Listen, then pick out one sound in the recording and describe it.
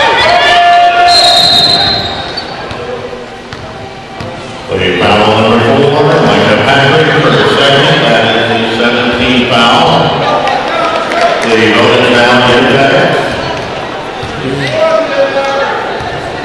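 A crowd of spectators cheers and chants loudly in a large echoing hall.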